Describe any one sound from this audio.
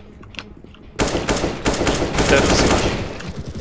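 An assault rifle fires in rapid bursts.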